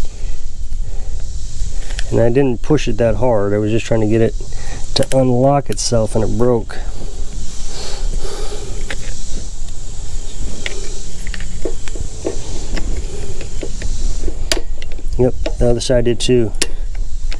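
A screwdriver scrapes and clicks against plastic and metal parts.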